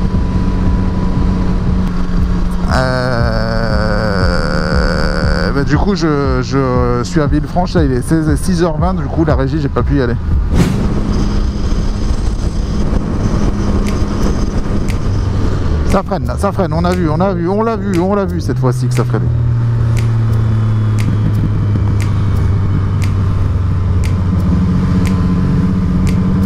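A motorcycle engine hums steadily as the bike cruises.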